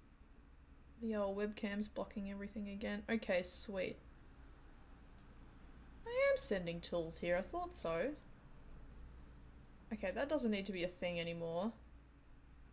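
A woman talks calmly into a close microphone.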